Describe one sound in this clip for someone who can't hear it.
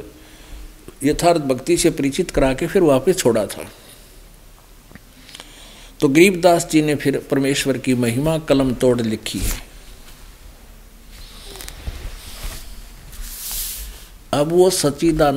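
An older man speaks calmly and deliberately into a microphone, pausing between phrases.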